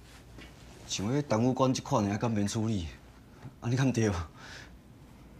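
A second man asks questions calmly.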